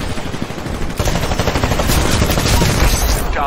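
A heavy gun fires in rapid bursts.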